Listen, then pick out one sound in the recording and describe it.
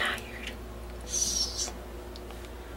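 A young man shushes softly.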